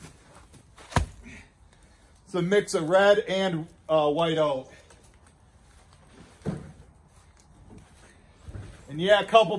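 Heavy logs thud as they are lifted from a truck bed.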